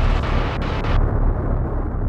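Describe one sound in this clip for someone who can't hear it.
An explosion roars and crackles.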